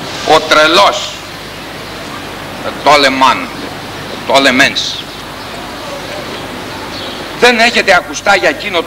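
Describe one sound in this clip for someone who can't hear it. A man recites slowly and expressively in short phrases, outdoors.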